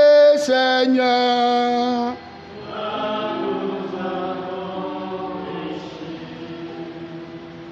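A man sings a slow chant through a microphone.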